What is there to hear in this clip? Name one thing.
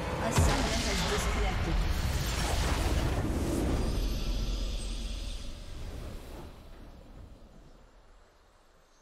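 A triumphant game fanfare swells and then slowly fades.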